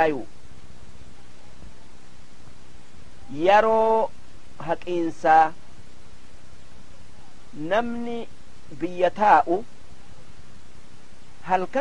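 An elderly man speaks slowly through a microphone, with long pauses.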